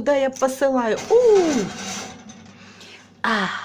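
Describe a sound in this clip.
A baking dish slides onto a metal oven rack.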